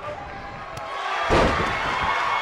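A heavy kick lands with a loud thud.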